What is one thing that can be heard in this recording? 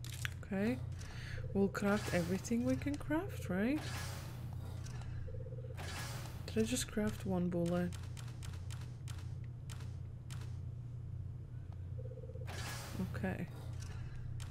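A young woman speaks with animation close to a headset microphone.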